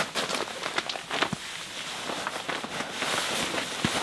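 A sleeping bag rustles as it is smoothed out.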